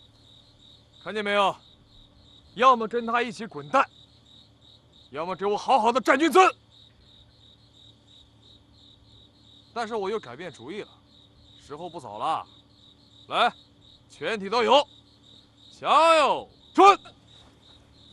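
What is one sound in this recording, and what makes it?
A young man speaks sternly, giving commands in a raised voice.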